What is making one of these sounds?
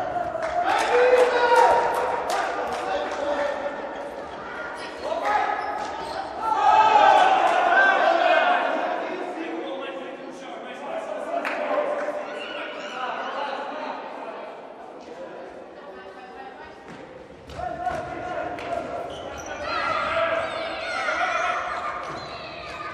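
A ball is kicked with sharp thuds that echo around a large hall.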